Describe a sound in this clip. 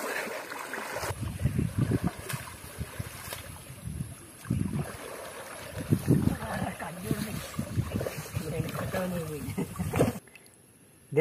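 Water splashes and sloshes nearby.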